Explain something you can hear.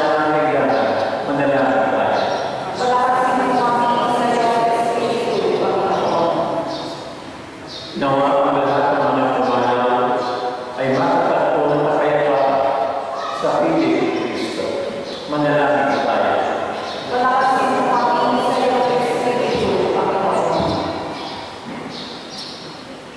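A man sings through a microphone and loudspeakers in a large echoing hall.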